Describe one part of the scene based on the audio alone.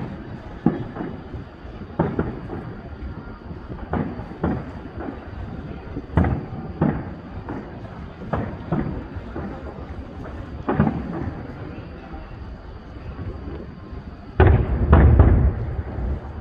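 Fireworks crackle after bursting.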